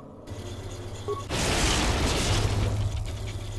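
Electricity crackles and buzzes in sharp bursts.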